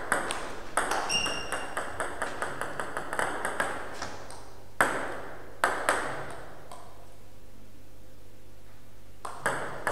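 A ping-pong ball clicks back and forth on paddles and a table in a quick rally.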